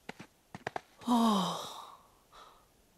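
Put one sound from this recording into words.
A young man exclaims briefly, close by.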